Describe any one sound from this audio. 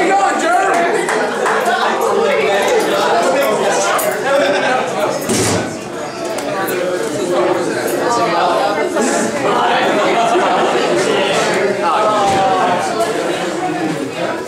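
A band plays loud rock music live through amplifiers.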